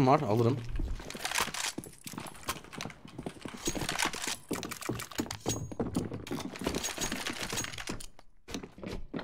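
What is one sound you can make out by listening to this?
Gunshots and clicks from a video game crackle in short bursts.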